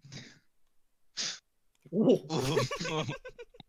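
A woman laughs into a close microphone.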